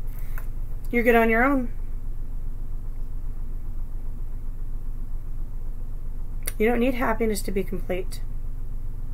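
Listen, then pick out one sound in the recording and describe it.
A woman speaks calmly, close to the microphone.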